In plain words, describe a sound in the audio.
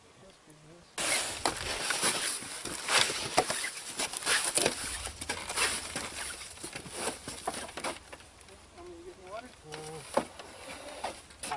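Footsteps thud on a wooden dock.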